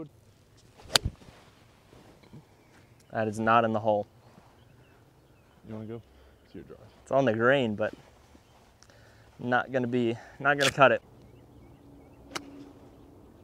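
A golf club strikes a ball with a sharp click.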